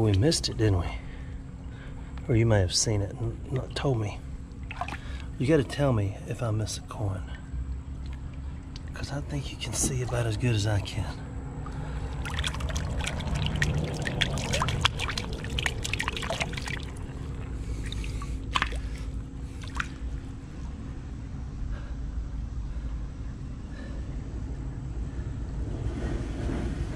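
Shallow water trickles over stones.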